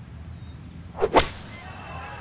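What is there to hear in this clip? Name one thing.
A golf club strikes a ball out of sand with a sharp thwack.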